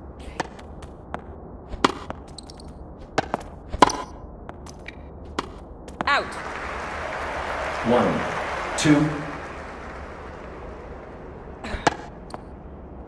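A tennis ball is hit back and forth with sharp pops.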